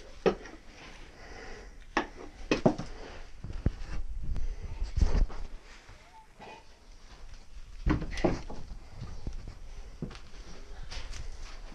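Debris and boards clatter and scrape.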